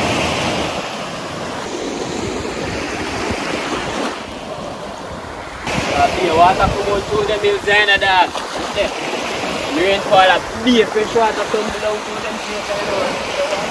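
Waves wash onto the shore close by.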